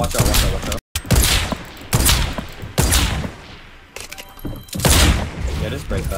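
Gunshots bang sharply.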